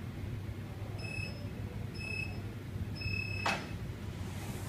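A timer beeps three times in a countdown, the last beep longer.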